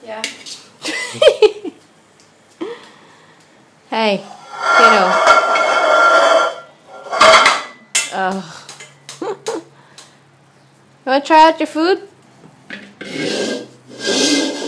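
A toddler bangs metal pans, making loud clanging and ringing.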